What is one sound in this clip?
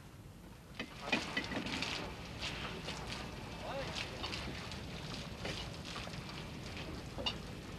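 A fishing net and floats slide wet over the side of a boat.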